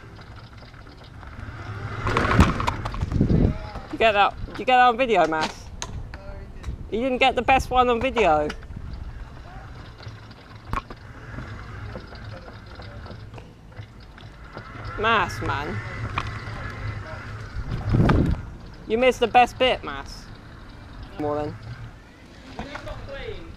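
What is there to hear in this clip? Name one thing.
Small plastic wheels rumble over rough tarmac.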